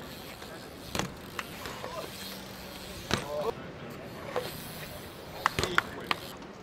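A bike lands with a hard clack on concrete.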